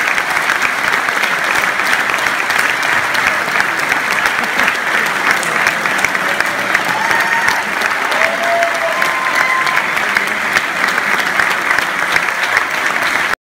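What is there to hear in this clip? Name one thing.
A large audience applauds loudly and steadily in a big hall.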